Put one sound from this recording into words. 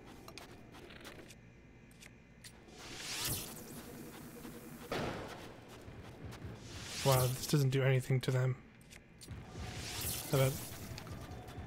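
A bow twangs as an arrow is shot.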